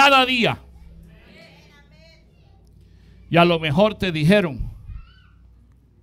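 A middle-aged man speaks with animation through a headset microphone, in short bursts.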